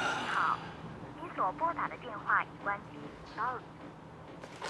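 A woman's recorded voice speaks faintly through a phone held to the ear.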